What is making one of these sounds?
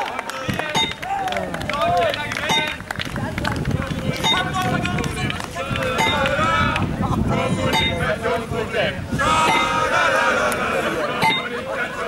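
Young men and women talk and shout outdoors.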